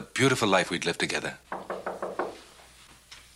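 A man speaks firmly and clearly up close.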